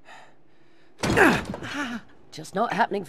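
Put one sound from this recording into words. A man kicks a wooden door with heavy thuds.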